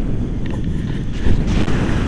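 A young man speaks close to the microphone over the wind.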